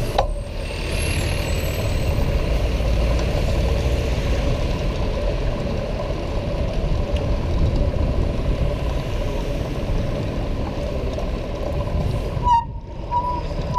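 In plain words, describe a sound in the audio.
Bicycle tyres roll over paving stones with a steady rattle.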